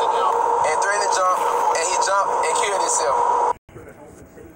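A young man talks with animation, close to a phone microphone.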